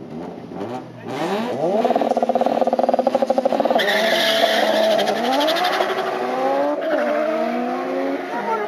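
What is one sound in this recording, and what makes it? A car engine roars loudly as the car launches and accelerates hard away, shifting gears.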